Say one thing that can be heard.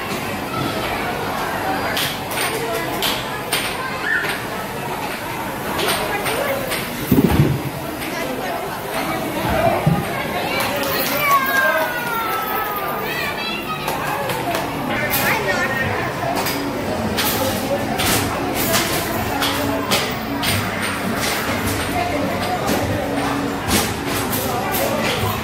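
Arcade machines chime and play electronic jingles in a busy, echoing hall.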